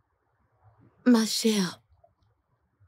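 Another young woman answers in a pleading tone.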